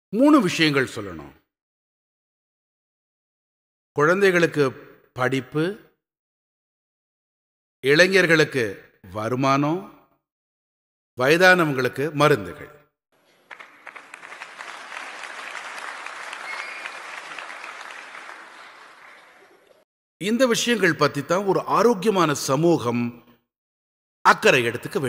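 An elderly man speaks with animation into a microphone, with pauses.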